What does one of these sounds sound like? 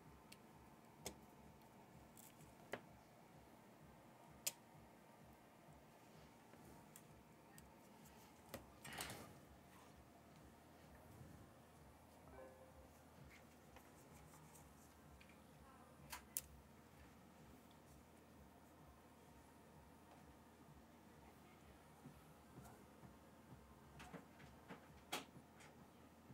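Small tools click and tap against a device at close range.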